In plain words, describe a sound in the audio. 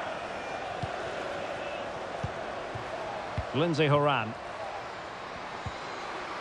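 A football is kicked with dull thumps now and then.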